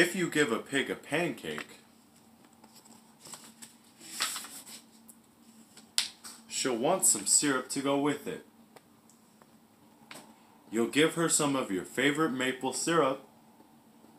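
A young man reads aloud calmly and expressively, close by.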